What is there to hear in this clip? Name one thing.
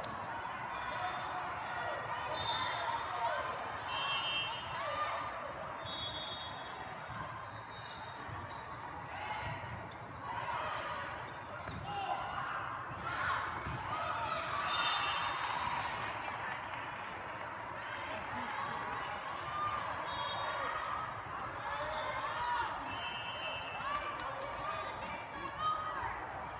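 Players' shoes squeak sharply on the court.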